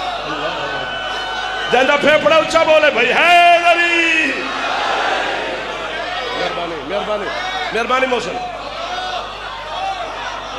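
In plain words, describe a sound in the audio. A young man orates passionately into a microphone, his voice loud and echoing over loudspeakers.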